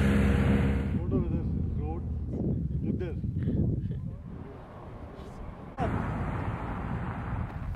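A small group of men and women chat and laugh nearby outdoors.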